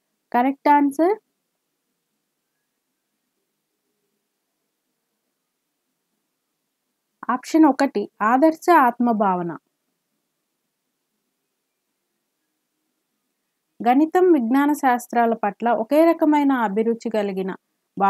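A woman speaks calmly into a close microphone, explaining in bursts with pauses.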